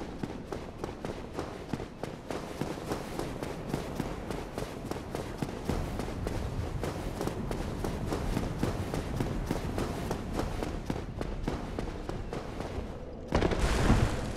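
Armoured footsteps clatter quickly on stone.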